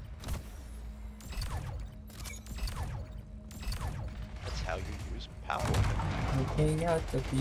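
A futuristic gun fires sharp zapping shots.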